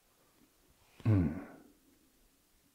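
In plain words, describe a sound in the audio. A man close by makes a short, low murmur that falls in pitch.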